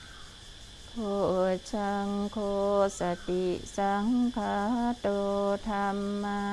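A group of men chant together in low, steady unison, echoing under a large open roof.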